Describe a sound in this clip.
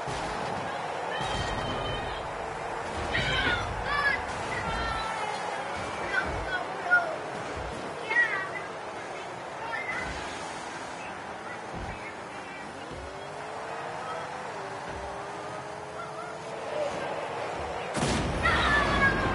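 Rocket-boosted video game cars whine and roar as they race.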